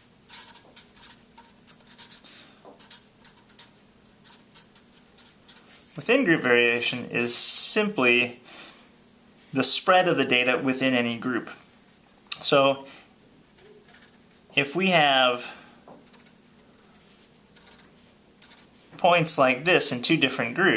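A marker scratches and squeaks across paper close by.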